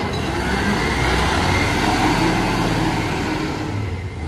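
A garbage truck drives away.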